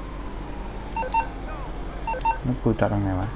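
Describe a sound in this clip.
A phone beeps with short electronic tones.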